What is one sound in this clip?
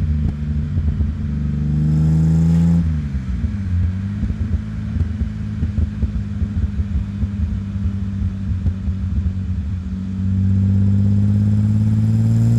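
Tyres roll over a paved road.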